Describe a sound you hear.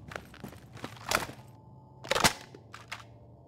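A rifle magazine clicks as a weapon is reloaded.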